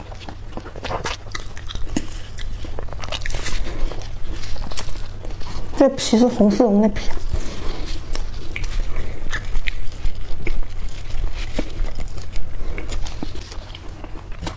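A pastry crust crackles and rustles between fingers.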